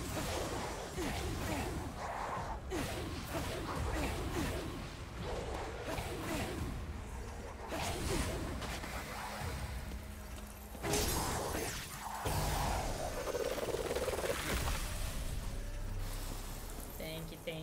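Magic blasts crackle and boom in quick bursts.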